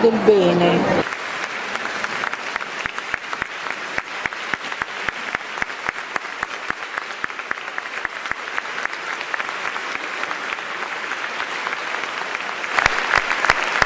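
A large crowd applauds in a big echoing hall.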